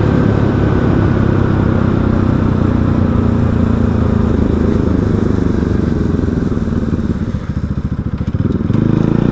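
A motorcycle engine rumbles steadily close by, easing off and then picking up again.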